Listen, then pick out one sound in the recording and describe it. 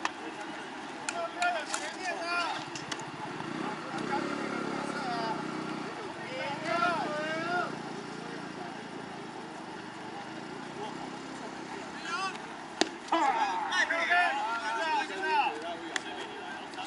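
Men shout and call out from across an open field.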